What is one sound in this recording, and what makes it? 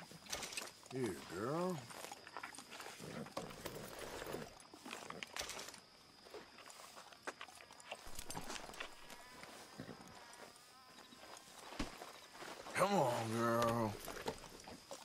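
A horse whinnies loudly nearby.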